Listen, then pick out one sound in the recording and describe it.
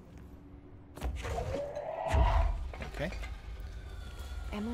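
A heavy object crashes and clatters as it is flung.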